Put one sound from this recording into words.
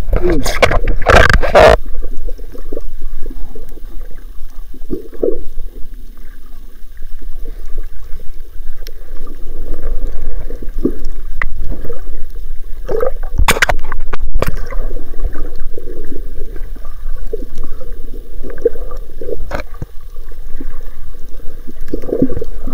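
Water swirls and gurgles, heard muffled from underwater.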